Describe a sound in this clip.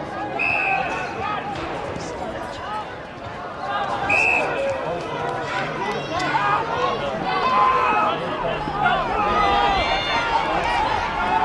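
A crowd of spectators chatters and calls out across an open outdoor ground.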